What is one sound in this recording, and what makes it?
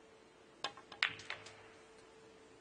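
Pool balls clack together and knock into a cushion.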